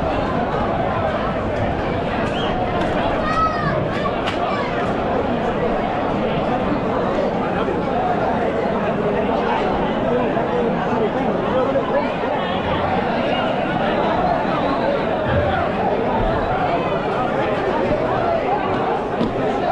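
A large crowd chatters and calls out loudly outdoors.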